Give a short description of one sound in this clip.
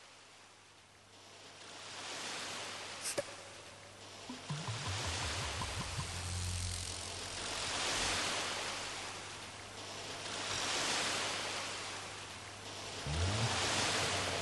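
Waves wash gently onto a beach in slow, swelling surges.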